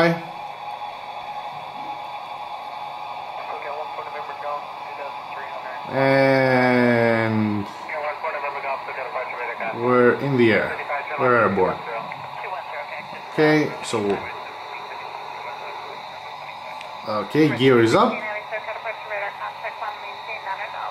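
A jet engine whines steadily through a small phone speaker.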